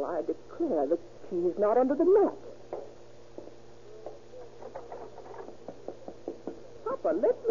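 A man speaks into a radio microphone, heard through an old, thin-sounding broadcast.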